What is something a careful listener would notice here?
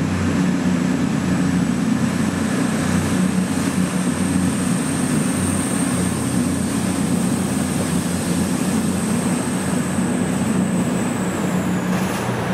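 Train wheels whine with a high steady tone on the rails.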